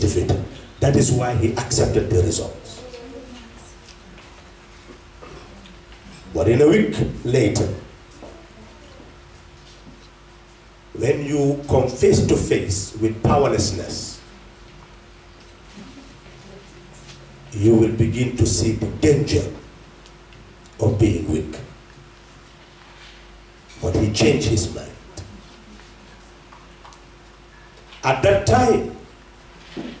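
An elderly man speaks slowly into a microphone, heard over a loudspeaker, in short bursts with pauses.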